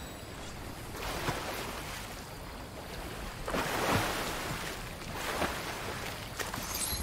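Water splashes and swooshes with swimming strokes.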